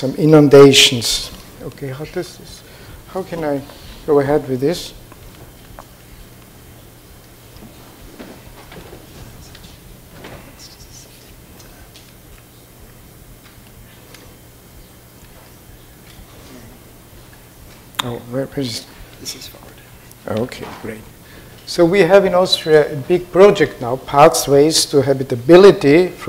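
An elderly man speaks calmly over a microphone in a large echoing hall.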